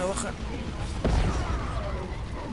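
A heavy blast booms once.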